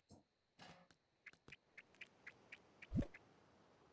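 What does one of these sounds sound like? Light footsteps tap quickly on stone paving.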